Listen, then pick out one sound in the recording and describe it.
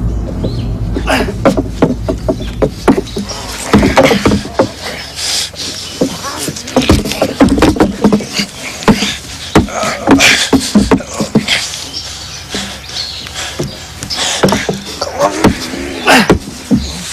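A man grunts and strains with effort.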